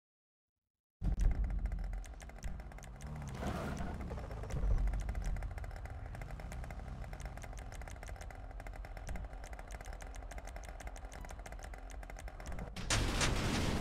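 A motorbike engine idles with a low steady rumble.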